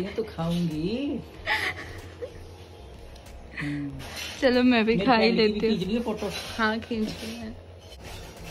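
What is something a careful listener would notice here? An older woman talks cheerfully up close.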